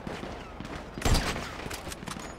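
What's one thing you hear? A sniper rifle fires a single loud shot.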